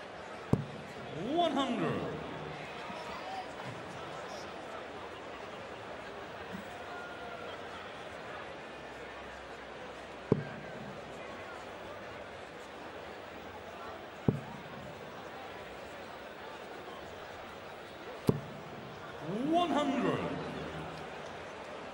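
A large crowd cheers and chants loudly.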